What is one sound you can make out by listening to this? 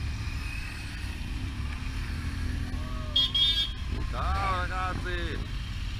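Touring motorcycles ride past close by.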